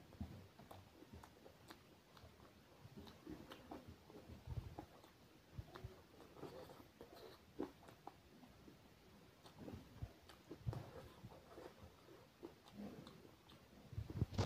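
A man chews food wetly and loudly, close to a microphone.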